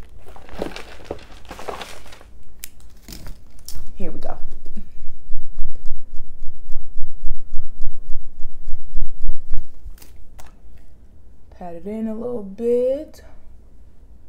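A young woman speaks softly and close to a microphone.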